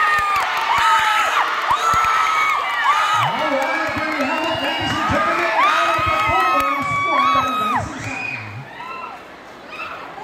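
A large crowd of people shouts and cheers loudly outdoors.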